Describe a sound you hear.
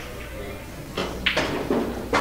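A cue strikes a billiard ball with a sharp click.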